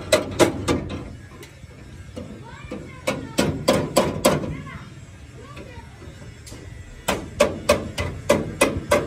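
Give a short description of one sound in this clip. A metal car body scrapes and grinds across a concrete ground.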